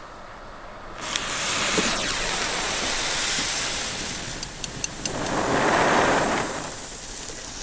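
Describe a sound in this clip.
A firework fountain hisses and roars as it burns.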